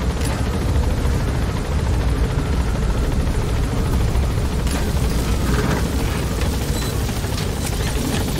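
A helicopter engine rumbles steadily close by.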